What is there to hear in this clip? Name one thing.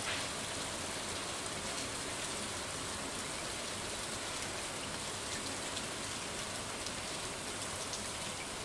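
Rain falls steadily with a soft, even hiss.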